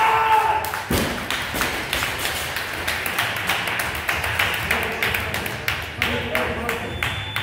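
A small crowd claps and cheers.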